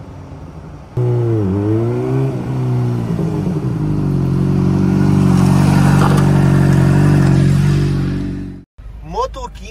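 A motorcycle engine revs loudly as the motorcycle speeds past close by.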